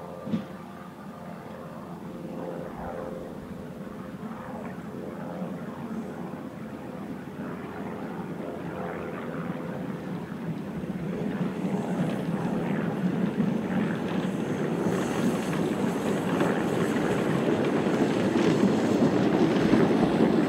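A small steam locomotive chuffs steadily as it approaches, growing louder.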